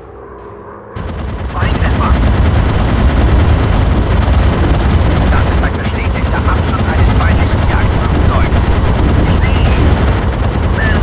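Machine guns rattle loudly in rapid bursts.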